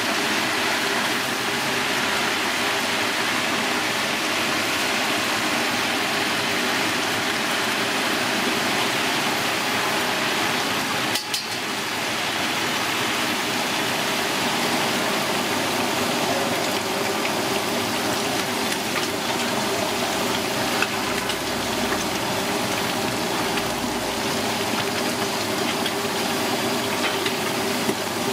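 Hot oil sizzles and crackles steadily as food deep-fries.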